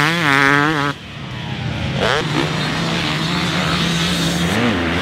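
A motorbike engine drones in the distance.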